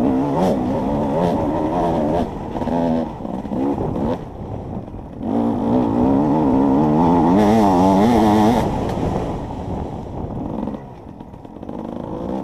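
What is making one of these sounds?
A dirt bike engine revs loudly close by, rising and falling in pitch.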